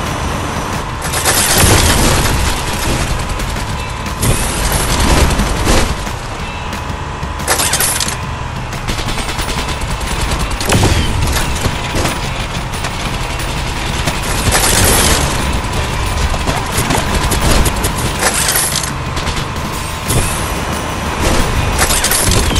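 Weapons zap and explode in loud bursts.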